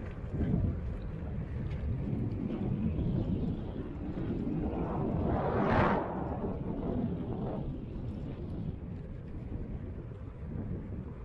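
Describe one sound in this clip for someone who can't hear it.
Wind rumbles and buffets steadily, outdoors on the move.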